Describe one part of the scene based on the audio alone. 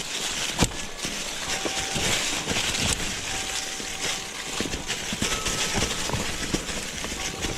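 A bicycle frame rattles and knocks over bumps.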